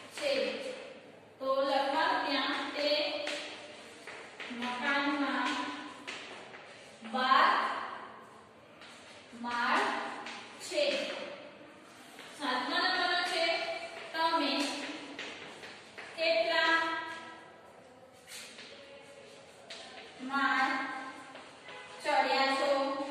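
A young woman speaks slowly and clearly nearby, as if dictating.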